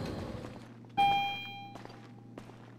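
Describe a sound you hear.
An elevator bell chimes.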